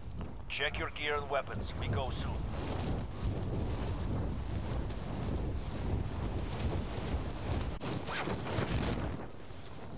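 Wind rushes loudly past in a steady roar during a fall.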